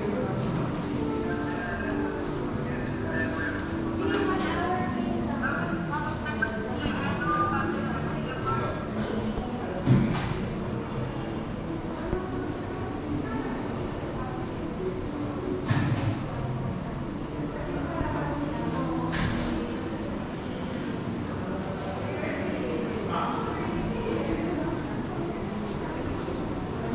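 Adult men and women chat in the background of a large echoing hall.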